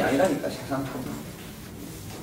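A middle-aged man speaks briefly and calmly nearby.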